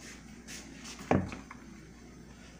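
A heavy bowl knocks down onto a table.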